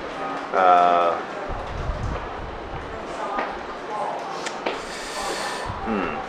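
A young man speaks calmly and quietly close by.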